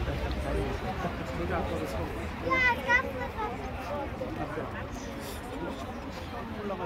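Traffic rumbles past on a city street.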